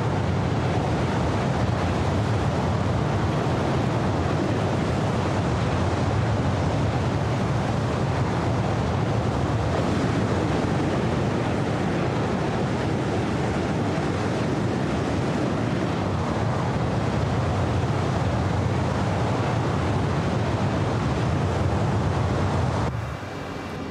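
A jet engine roars loudly and steadily outside.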